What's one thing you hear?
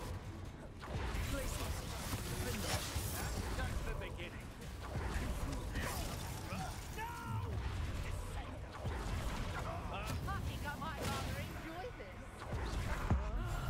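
Lightning spells crackle and hiss loudly.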